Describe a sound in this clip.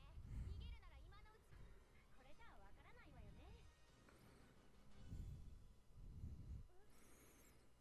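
A young woman laughs softly close to a microphone.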